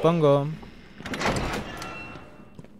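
A heavy metal lock mechanism clanks open.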